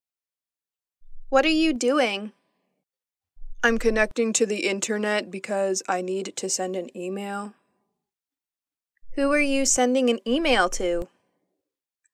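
A young woman asks questions in a calm, clear voice.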